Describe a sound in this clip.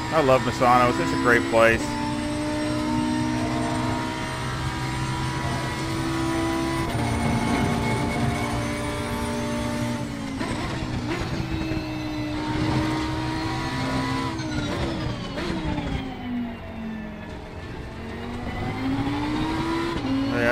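A racing car engine roars steadily, rising and falling in pitch.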